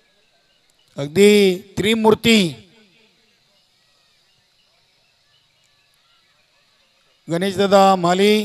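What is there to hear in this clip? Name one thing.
A man announces loudly and with animation through a loudspeaker.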